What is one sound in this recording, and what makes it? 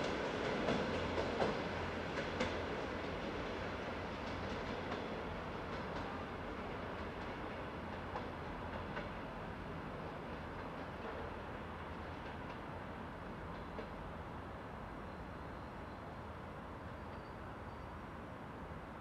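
A train rumbles away along the tracks, fading into the distance.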